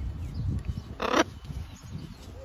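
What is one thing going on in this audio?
A parrot squawks loudly close by.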